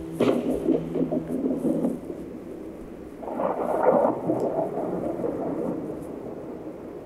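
An elderly man speaks in a strained voice, heard through a loudspeaker.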